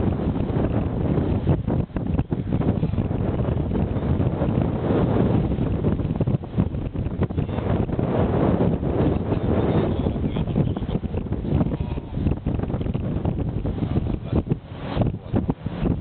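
Tyres rumble steadily on the road as a car drives along.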